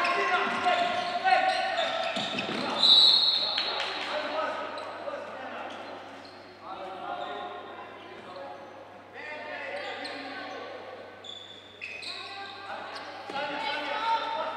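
Sports shoes squeak on the court.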